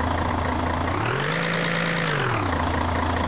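A loader's engine revs up briefly and then settles.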